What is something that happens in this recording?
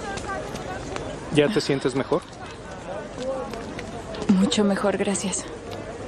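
A crowd murmurs faintly in the background outdoors.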